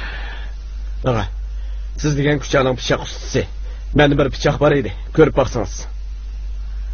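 A younger man talks with animation.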